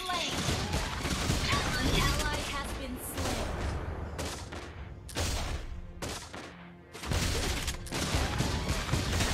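Video game fight sounds burst and clash.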